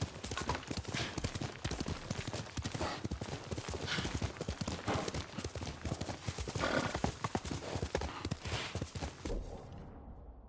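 A horse gallops with rapid hoofbeats.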